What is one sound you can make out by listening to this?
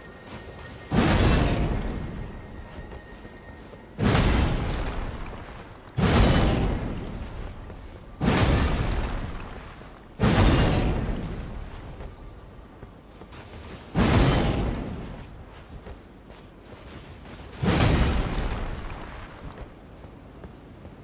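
Huge horns blast with a deep boom, again and again, each blast fading slowly.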